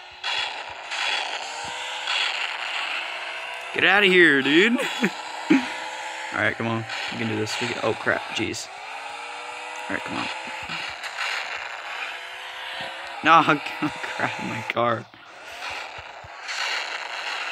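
A video game rocket boost roars in bursts.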